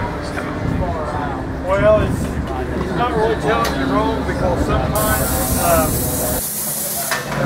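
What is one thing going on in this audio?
A man talks nearby in a lively voice.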